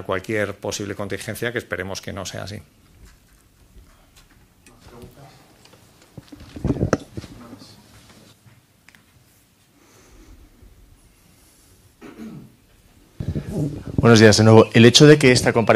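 An older man speaks calmly into a microphone, with pauses.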